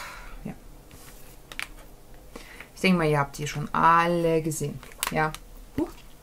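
A plastic palette clicks and rattles in hands.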